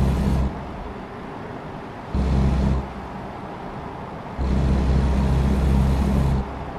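Rain patters steadily on a windshield.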